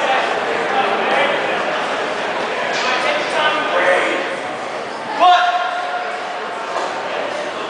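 Several young men shout encouragement loudly in an echoing room.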